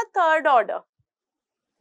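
A woman speaks briefly and expressively into a close microphone.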